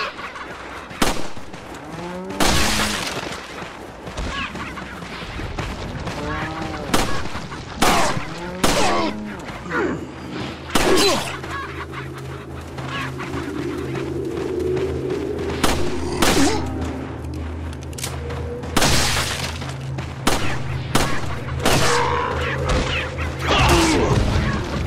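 A pistol fires sharp single shots, now and then.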